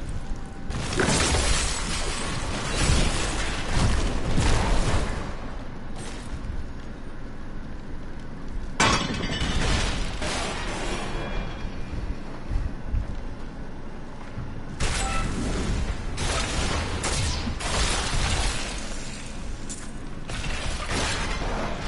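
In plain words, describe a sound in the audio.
Spells burst with loud whooshing blasts.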